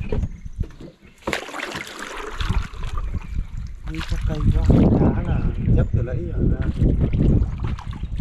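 A wooden pole splashes and pushes through water.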